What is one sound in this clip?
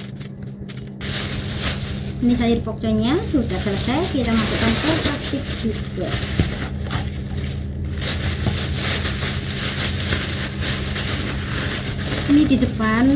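A plastic bag rustles loudly.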